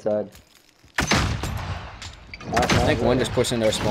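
A pistol fires loud gunshots.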